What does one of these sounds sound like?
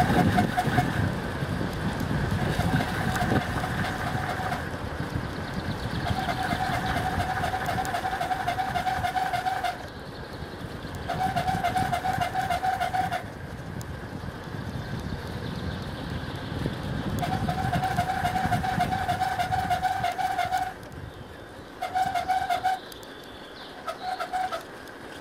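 Wind rushes and buffets close by, outdoors.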